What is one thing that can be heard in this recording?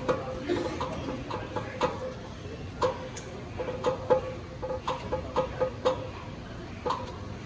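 A small metal bell is struck over and over in a quick, uneven rhythm, each stroke ringing briefly.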